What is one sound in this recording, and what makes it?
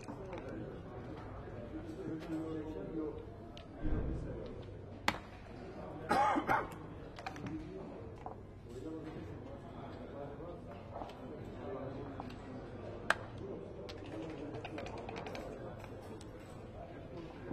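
Dice clatter onto a wooden board.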